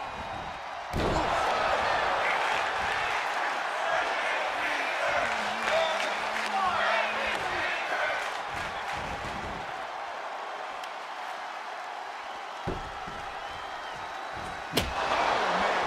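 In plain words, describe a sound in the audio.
A hard impact thuds as a wrestler strikes a fallen opponent.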